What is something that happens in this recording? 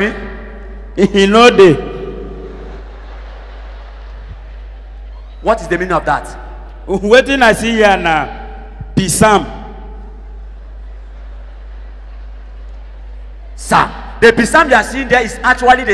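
A man speaks loudly with animation through a microphone in a large echoing hall.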